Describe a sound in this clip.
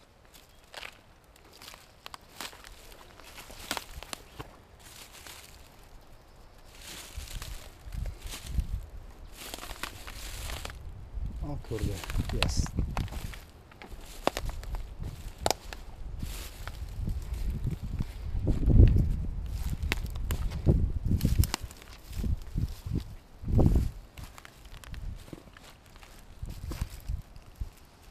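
Footsteps crunch through dry grass and twigs.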